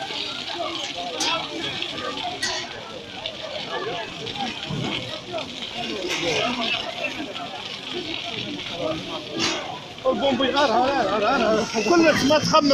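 A crowd of men talks and shouts excitedly nearby.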